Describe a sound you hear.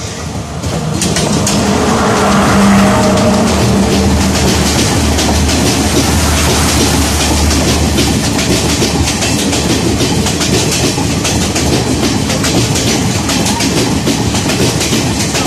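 A passing train roars by close at hand.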